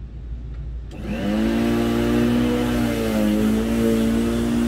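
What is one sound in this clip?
A lawn mower motor starts up and runs with a steady whirring hum.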